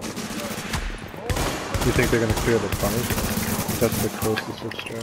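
Gunshots fire in quick bursts close by.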